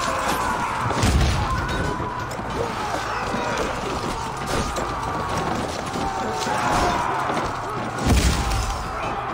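A heavy battering ram slams into a wooden gate with a deep booming thud.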